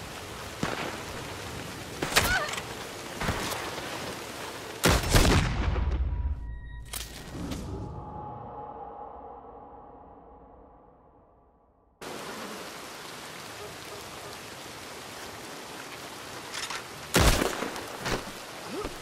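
Gunshots crack loudly nearby.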